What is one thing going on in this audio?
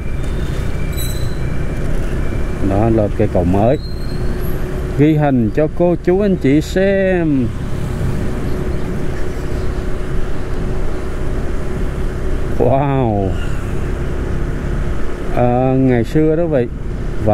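Wind rumbles steadily against a moving rider outdoors.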